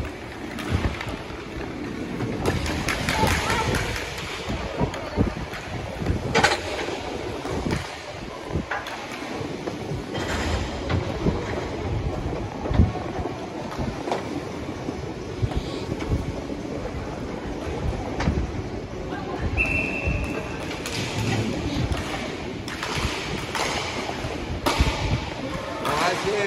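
Hockey sticks clack against a ball and the floor.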